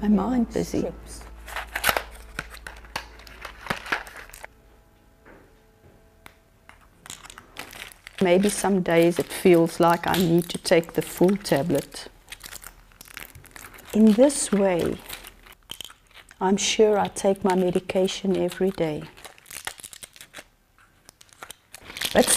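Pills rattle and click in a plastic pill box.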